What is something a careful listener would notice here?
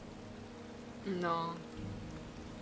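A young woman speaks briefly into a microphone.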